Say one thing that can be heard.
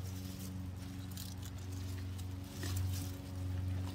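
Leaves rustle as plants are handled.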